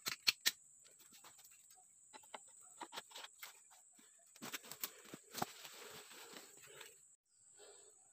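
Dry leaves and twigs crackle and snap underfoot.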